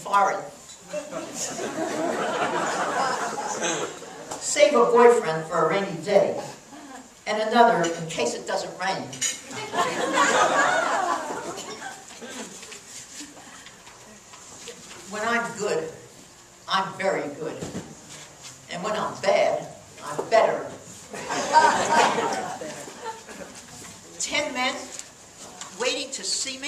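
An elderly woman reads aloud expressively into a microphone, heard through a loudspeaker.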